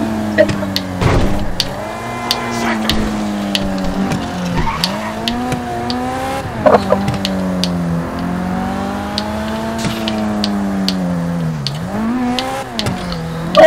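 A car engine hums steadily, rising and dropping in pitch as the gears change.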